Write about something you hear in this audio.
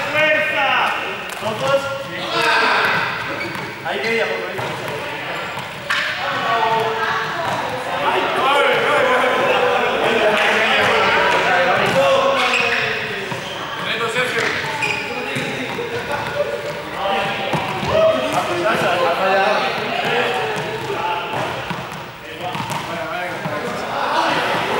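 Young men talk and call out across a large echoing hall.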